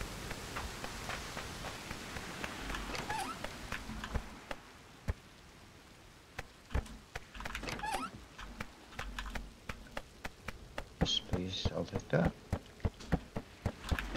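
Footsteps thud quickly on wooden floors.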